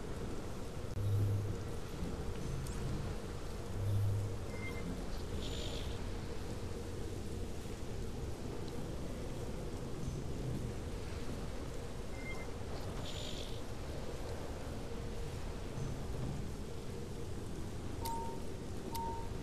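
Soft electronic menu blips and whooshes sound now and then.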